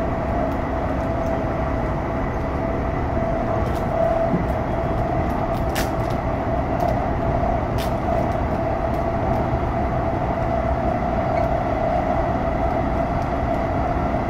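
An electric train rumbles steadily along the tracks, with a low hum.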